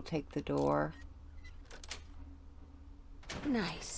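A metal pick scrapes and clicks inside a lock.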